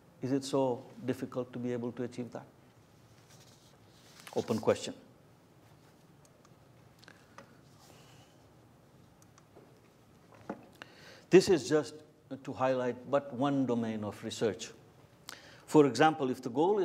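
A middle-aged man speaks calmly through a microphone, with long pauses.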